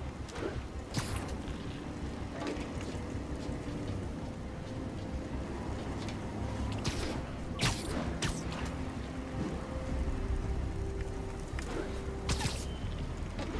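Webs shoot out with sharp, quick thwips.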